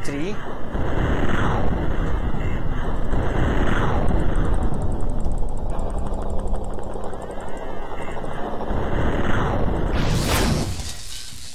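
Electric energy crackles and hums in bursts.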